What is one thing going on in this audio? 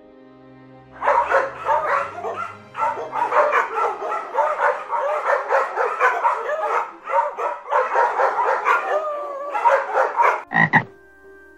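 A dog barks and yelps rapidly.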